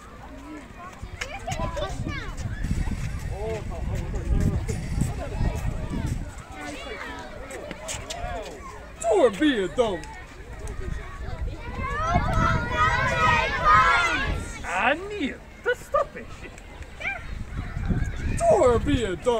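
Children chatter and call out outdoors.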